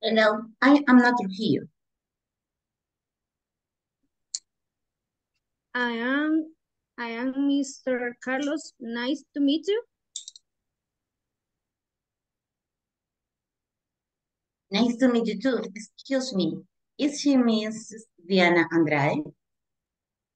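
A woman speaks slowly and clearly over an online call, in short phrases with pauses.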